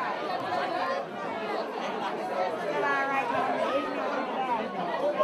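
A crowd of people chatters loudly in a busy room.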